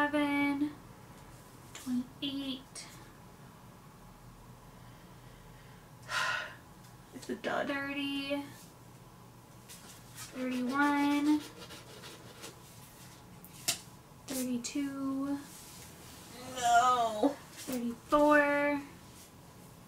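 A young woman speaks close by in short, drawn-out phrases.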